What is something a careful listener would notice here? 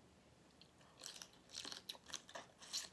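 Wet smacking sounds come as a young woman licks her fingers.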